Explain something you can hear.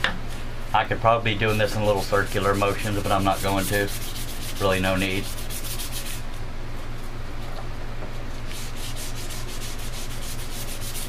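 A hand rubs a smooth hard surface with soft, repeated strokes.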